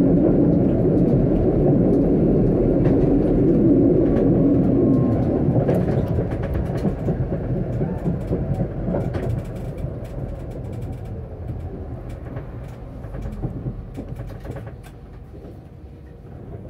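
A tram rumbles along the rails, slowing down steadily.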